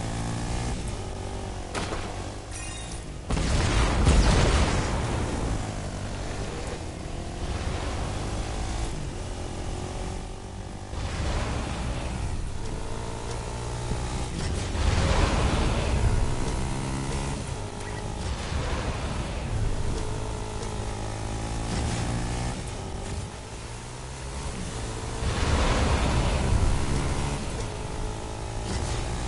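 A vehicle engine hums and revs steadily.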